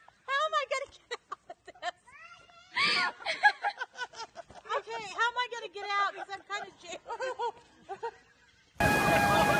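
An elderly woman laughs loudly and shrieks close by.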